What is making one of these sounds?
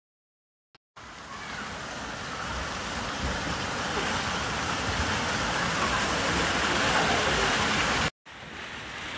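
Water splashes as a small child wades through a pool.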